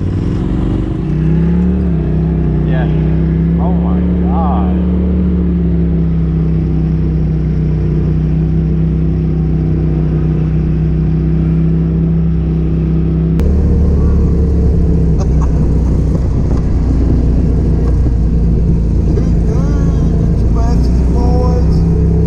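A side-by-side engine hums steadily while driving along a road.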